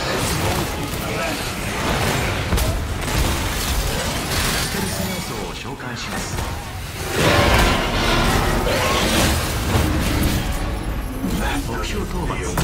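Heavy gunfire and explosions boom and crackle.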